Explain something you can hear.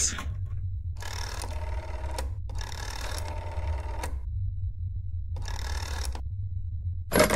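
A rotary telephone dial whirrs as it turns and clicks back.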